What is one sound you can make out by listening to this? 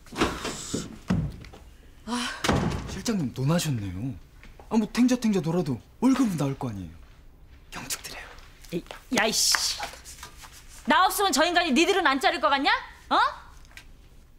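A woman speaks loudly and angrily nearby.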